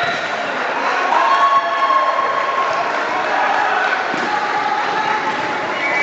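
A volleyball thumps off players' forearms.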